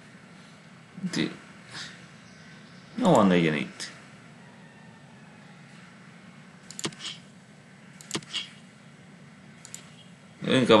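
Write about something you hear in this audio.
Tiles click softly as they are picked.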